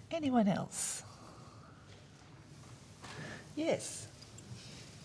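A woman speaks briefly through a microphone in a large echoing hall.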